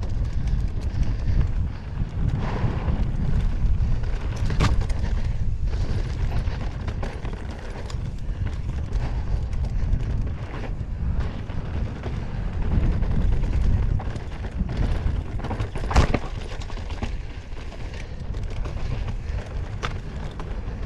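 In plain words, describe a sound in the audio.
Wind rushes loudly past a fast-moving rider.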